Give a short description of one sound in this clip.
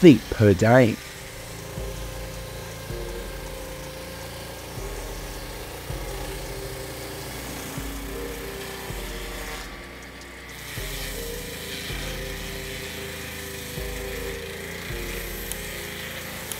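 A circular saw blade whirs as it cuts through a log.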